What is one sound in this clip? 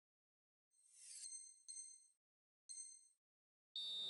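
Short electronic beeps sound in a countdown.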